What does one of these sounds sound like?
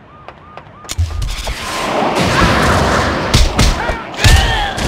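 A loud blast bursts with a roaring whoosh.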